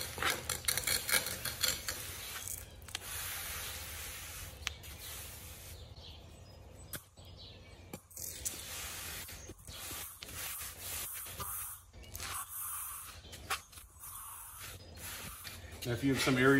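A gloved hand brushes and scrapes dust.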